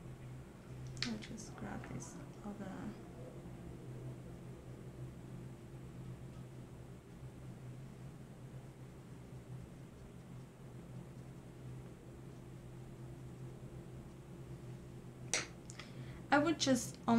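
A woman speaks softly, close by.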